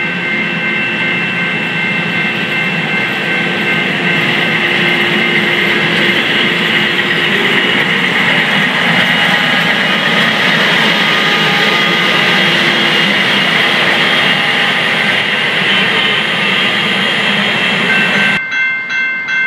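A heavy rail maintenance machine rumbles and clanks as it rolls past close by.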